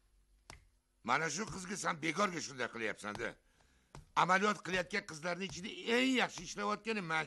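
An elderly man speaks loudly and forcefully nearby.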